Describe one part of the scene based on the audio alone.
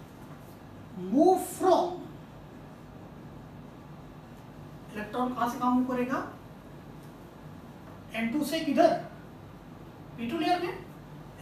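A man speaks in short bursts, lecturing calmly.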